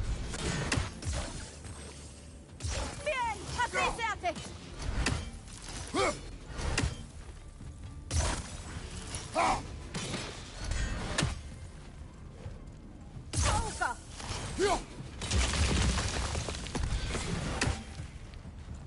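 An axe whooshes through the air again and again.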